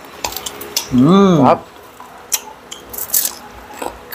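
A young man chews and crunches food.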